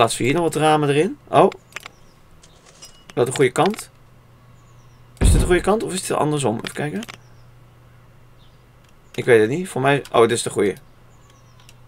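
A young man talks casually into a close microphone, in short bursts with pauses.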